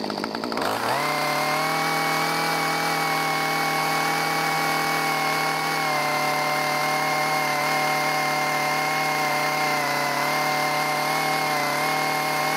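A chainsaw cuts through wood.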